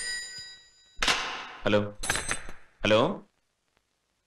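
A man speaks into a telephone.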